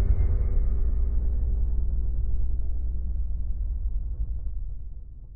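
A large fire roars with a deep rumble, then fades.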